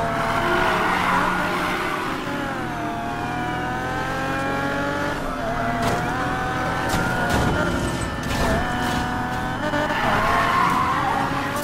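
Tyres screech as a car drifts.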